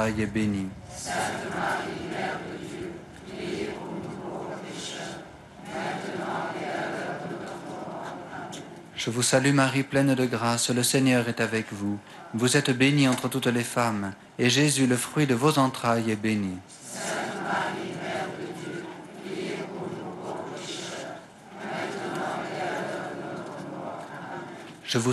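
A large crowd outdoors sings in reply.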